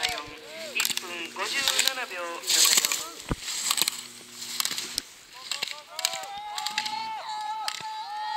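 Skis scrape and hiss on hard snow in quick turns.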